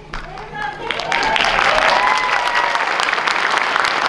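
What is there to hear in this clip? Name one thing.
An audience of young people cheers and whoops.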